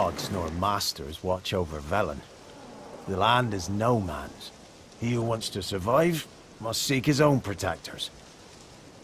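A man speaks calmly in a deep voice, close by.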